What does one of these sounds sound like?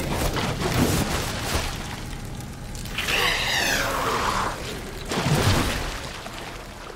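A flamethrower roars loudly.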